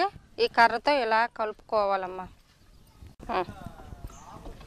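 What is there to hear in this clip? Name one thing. A young woman speaks calmly and clearly.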